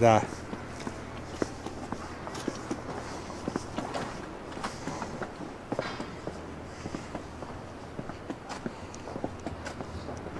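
Footsteps tap steadily on a paved pavement outdoors.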